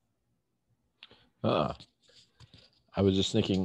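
A middle-aged man speaks over an online call.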